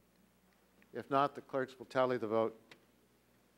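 An older man speaks into a microphone.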